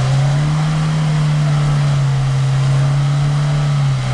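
Tyres spin and splash through mud.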